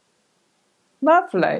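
An older woman speaks calmly and clearly, close by.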